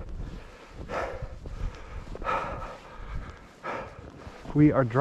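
Footsteps plough through deep powdery snow with soft, rhythmic swishes.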